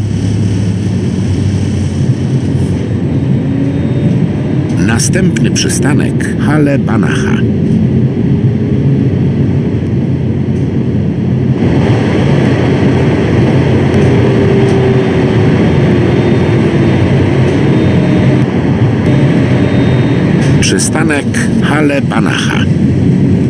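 A tram's electric motor hums and rumbles steadily as it runs along the track.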